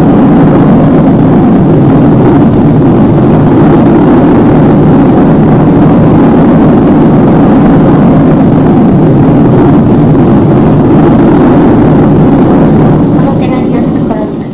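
Airplane engines drone loudly and steadily.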